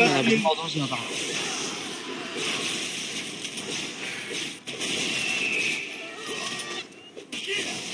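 Fiery spells whoosh and crackle.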